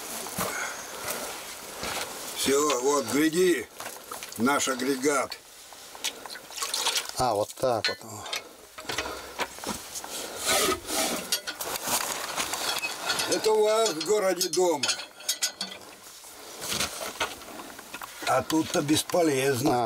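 A hand pump creaks and clanks as its handle is worked.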